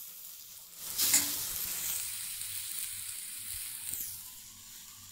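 A metal spatula scrapes and clatters against a wok.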